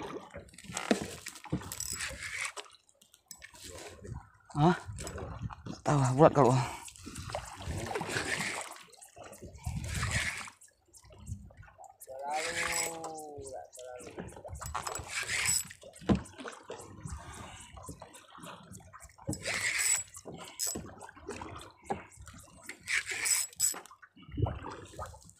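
A fishing reel whirs and clicks as its line is wound in.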